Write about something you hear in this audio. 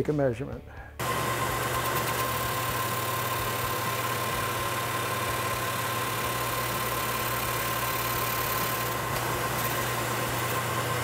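A cutting tool scrapes steadily across spinning metal.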